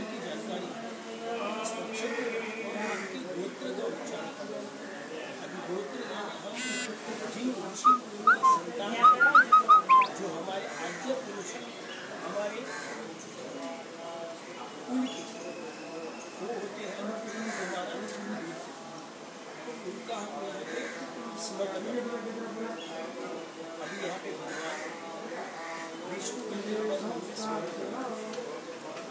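A man chants steadily and close by.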